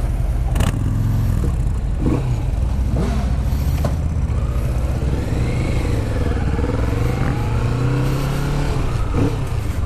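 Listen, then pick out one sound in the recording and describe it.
A parallel-twin cruiser motorcycle pulls away and accelerates.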